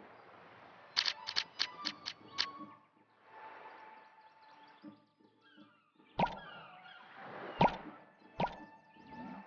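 Short sharp clicks sound as game menus open and close.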